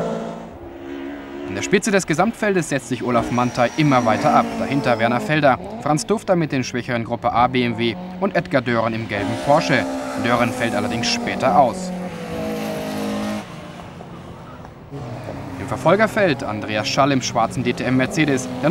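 Race car engines roar and whine as cars speed past outdoors.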